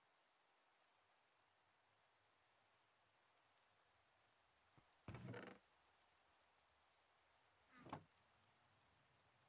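Rain falls steadily and softly.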